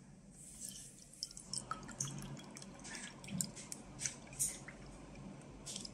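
Powdered milk pours softly into a bowl of water.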